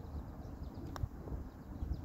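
A golf club taps a ball with a light click.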